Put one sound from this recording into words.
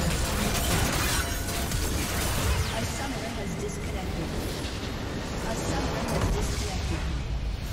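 Game spells crackle and clash in a fast, noisy battle.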